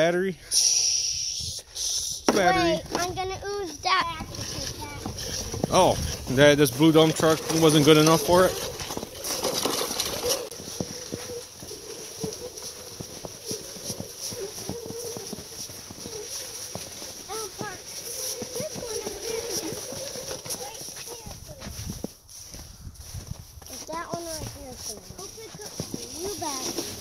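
Plastic toy wheels crunch and scrape through snow.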